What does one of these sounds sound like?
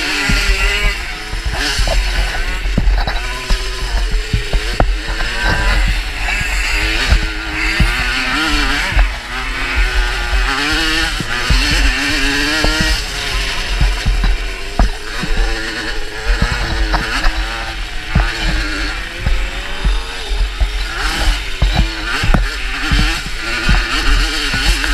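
A motorcycle engine roars and revs up and down close by.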